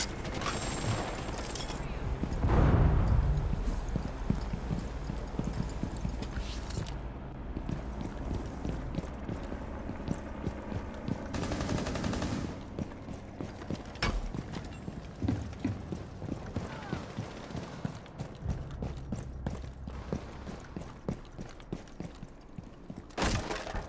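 Quick footsteps thud and scuff on hard ground.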